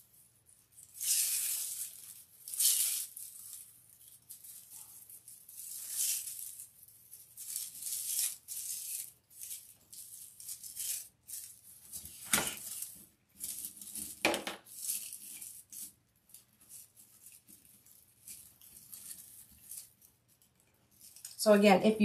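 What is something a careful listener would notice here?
Dry raffia rustles and crinkles as it is handled.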